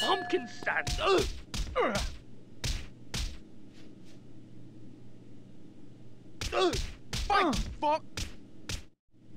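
Punches land on a body with heavy thuds.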